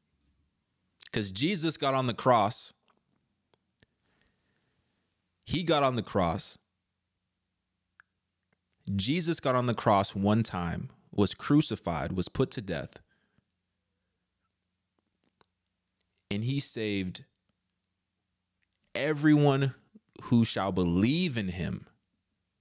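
A man talks with animation, close to a microphone, in short bursts with pauses.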